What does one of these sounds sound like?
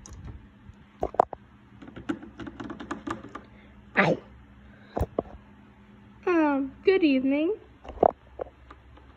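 Plastic toys knock and tap against a hard surface.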